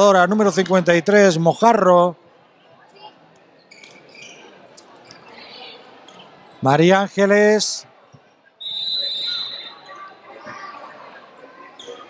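A ball bounces on a wooden court.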